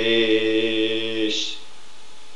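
An elderly man sings a long, steady note up close.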